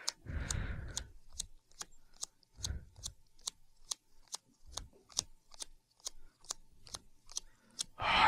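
Playing cards are shuffled with soft, rapid clicks.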